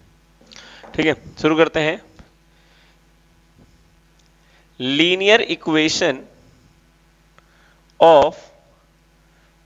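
A man speaks calmly and clearly, close by, in short bursts.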